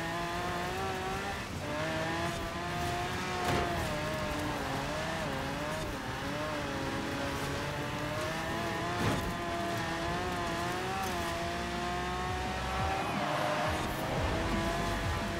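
A racing car engine roars and revs up and down steadily.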